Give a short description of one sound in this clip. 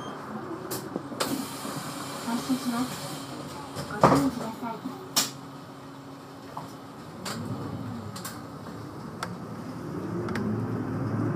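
A bus engine hums and revs up as the bus pulls away.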